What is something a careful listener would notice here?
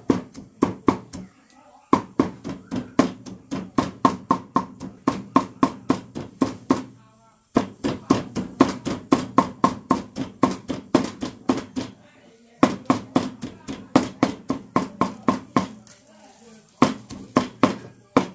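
A knife chops rapidly on a wooden board in quick bursts.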